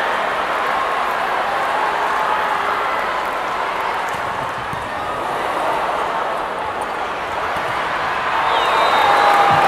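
A large crowd cheers and chants loudly in an echoing arena.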